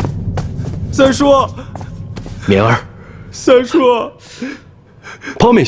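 A young man speaks in a choked, tearful voice.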